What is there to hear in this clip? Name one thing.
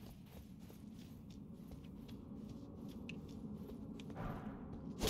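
Footsteps tread on a rocky floor.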